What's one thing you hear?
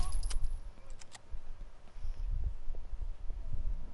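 Footsteps climb stone stairs.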